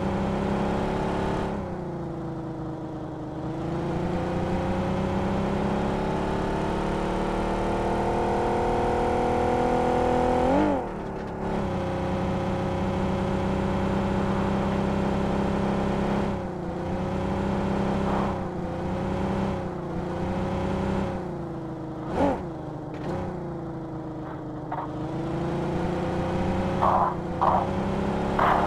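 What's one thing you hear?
A car engine hums steadily, rising and falling in pitch as it speeds up and shifts gears.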